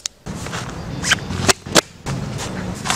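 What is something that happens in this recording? Ski boot buckles snap closed.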